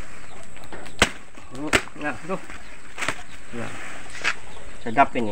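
A knife chops through leafy stalks with sharp thwacks.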